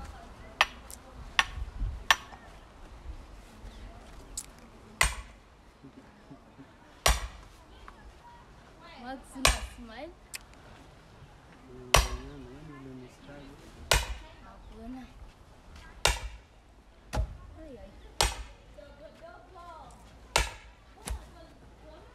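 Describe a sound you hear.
An axe strikes and splits wood on a chopping block.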